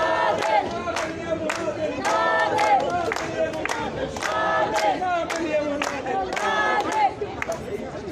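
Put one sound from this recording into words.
A crowd chants loudly together.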